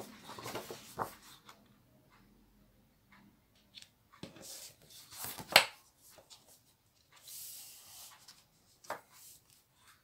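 A sheet of paper taps against a hard surface.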